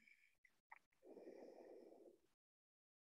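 A woman breathes in softly.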